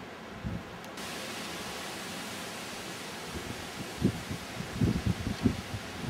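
Wind blows in gusts through the trees outdoors.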